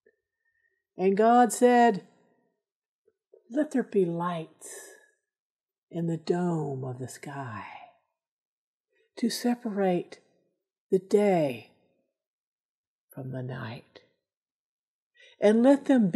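A middle-aged woman speaks calmly and clearly into a nearby microphone, pausing between phrases.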